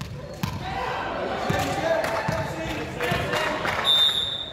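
A volleyball is bounced on a hard floor.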